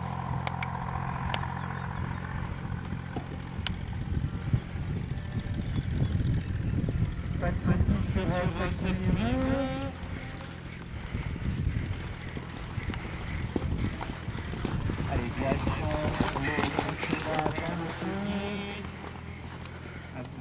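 A horse gallops, its hooves thudding on grass.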